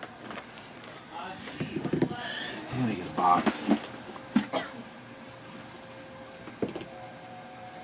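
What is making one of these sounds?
A cardboard box slides and knocks on a table.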